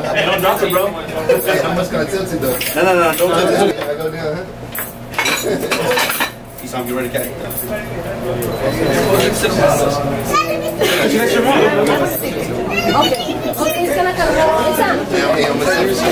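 A crowd of young men chatters and laughs in a room.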